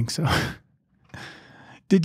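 A middle-aged man laughs softly into a microphone.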